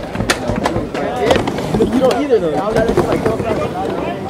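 Skateboard wheels roll across a smooth ramp.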